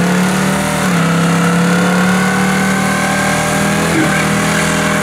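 A loud truck engine roars at high revs.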